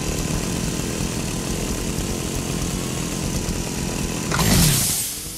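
A small engine rumbles steadily.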